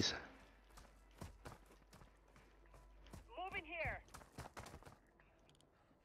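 Gunshots crack a few times.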